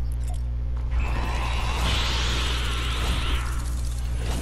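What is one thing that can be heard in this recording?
A crackling burst of energy whooshes and swirls, then fades.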